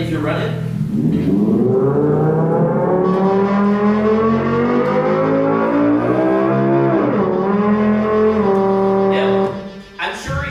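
Electronic tones play through loudspeakers, gliding up and then holding steady.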